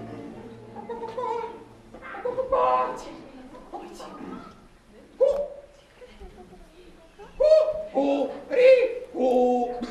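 A performer speaks in a high, playful character voice with animation.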